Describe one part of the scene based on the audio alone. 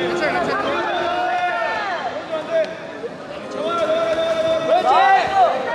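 Young men shout instructions loudly in a large echoing hall.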